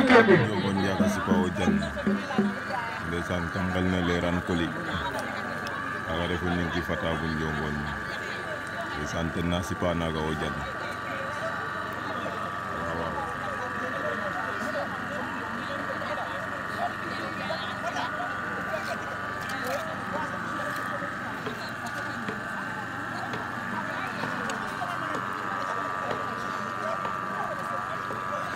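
A crowd murmurs and chatters outdoors.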